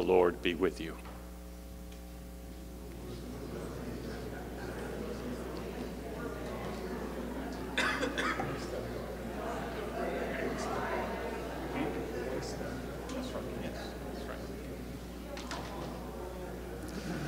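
A piano or keyboard plays soft, sustained chords.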